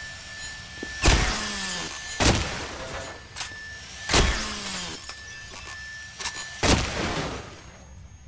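Bullets whizz and strike walls with sharp cracks.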